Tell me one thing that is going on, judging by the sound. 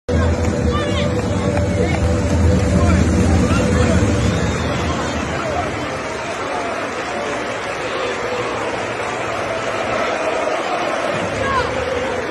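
A large stadium crowd cheers and chants throughout.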